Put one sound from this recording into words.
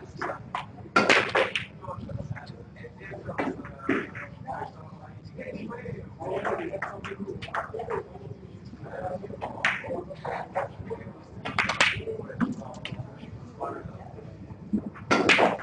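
Snooker balls knock together with a hard clack.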